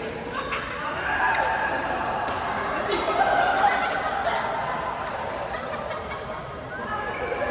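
Many people talk and call out in the distance.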